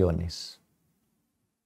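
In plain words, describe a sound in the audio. A man speaks briefly and calmly close to a microphone.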